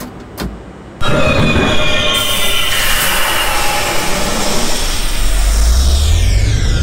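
Subway train doors slide shut with a thud.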